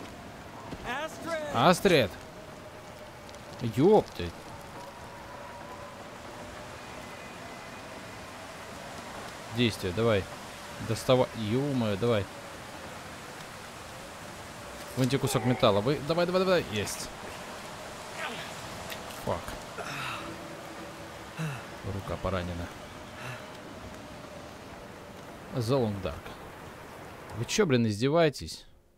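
A campfire crackles softly close by.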